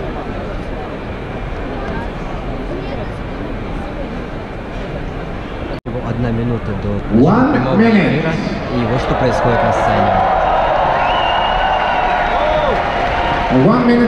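A large crowd murmurs and chatters in a big echoing arena.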